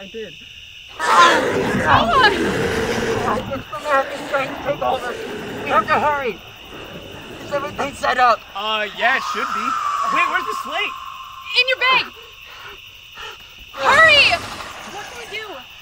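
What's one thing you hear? A young woman screams loudly.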